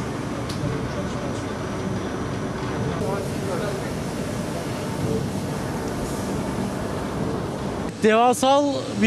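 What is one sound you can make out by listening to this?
A printing machine hums and whirs steadily.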